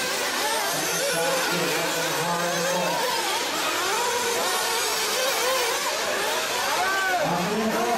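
A small electric motor whines and revs up and down as a model car races.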